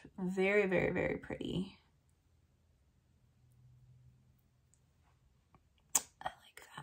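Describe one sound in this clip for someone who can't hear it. A woman speaks calmly and close to a microphone.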